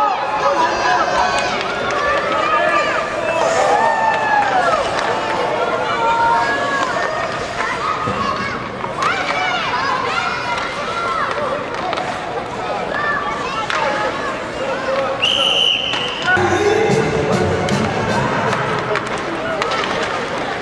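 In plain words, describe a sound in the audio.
Ice skates scrape across the ice.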